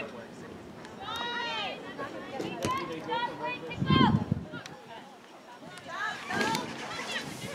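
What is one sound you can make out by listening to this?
Young girls shout to each other across an open field.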